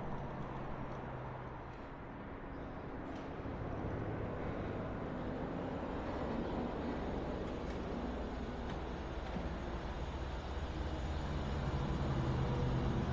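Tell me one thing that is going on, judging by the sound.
A truck's diesel engine idles with a low, steady rumble.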